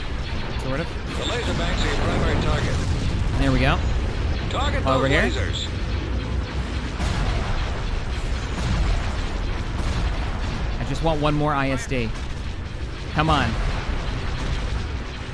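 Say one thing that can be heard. Laser cannons fire and explosions boom.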